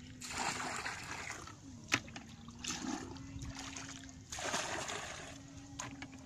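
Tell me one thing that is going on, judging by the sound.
Water splashes and sloshes as a bucket scoops it from a shallow puddle.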